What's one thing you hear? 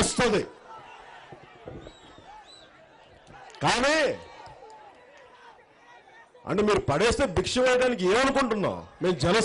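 A man speaks forcefully into a microphone, with long pauses between phrases.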